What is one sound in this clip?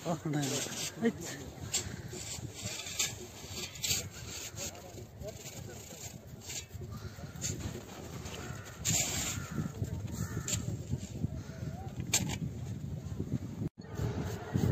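A tool scrapes and carves packed snow.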